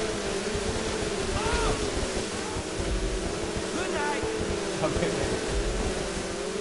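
Jet ski engines drone steadily at high revs.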